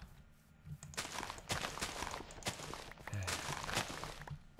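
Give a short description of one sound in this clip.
Dry crops rustle and snap as they are broken in quick bursts.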